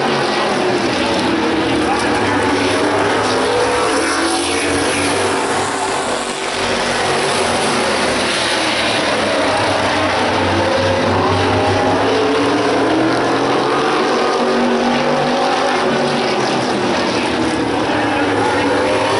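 Race car engines roar loudly, rising and falling in pitch.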